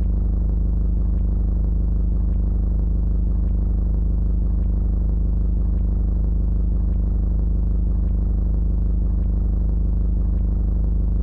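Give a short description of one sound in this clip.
A monster truck engine idles with a steady, deep rumble.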